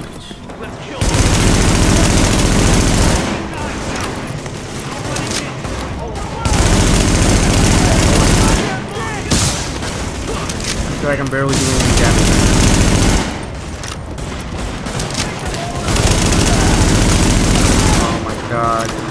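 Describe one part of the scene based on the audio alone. Automatic rifle fire rattles in long bursts.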